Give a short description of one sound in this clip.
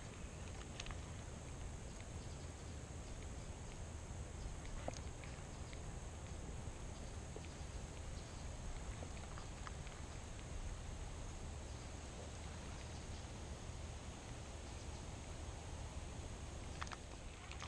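Wind blows steadily outdoors, rumbling low.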